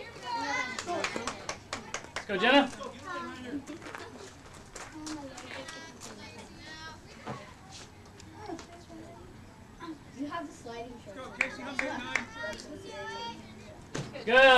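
Young girls shout and cheer nearby outdoors.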